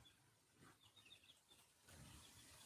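Goslings peep softly.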